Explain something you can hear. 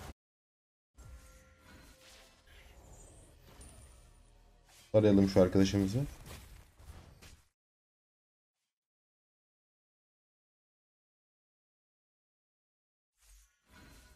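Magic spell effects whoosh and crackle in quick bursts.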